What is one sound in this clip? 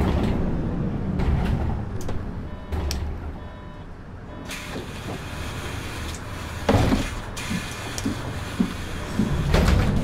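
A diesel city bus engine idles.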